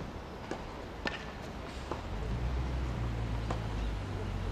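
A tennis ball pops off a racket.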